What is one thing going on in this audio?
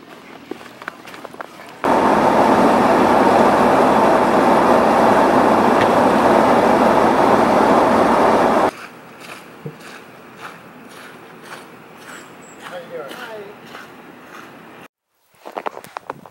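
Boots crunch through snow.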